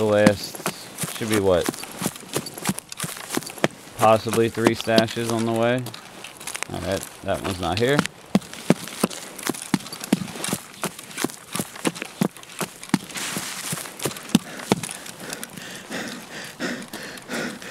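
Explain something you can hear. Footsteps tread steadily over grass and rocky ground.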